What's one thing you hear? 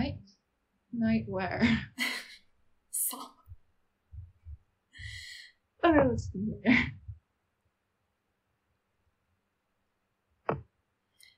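A young woman speaks with animation and laughs over an online call.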